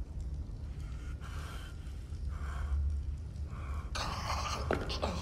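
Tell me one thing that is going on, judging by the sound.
A man speaks quietly and gravely nearby.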